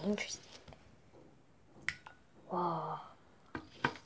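A tablet plops into a glass of water and fizzes.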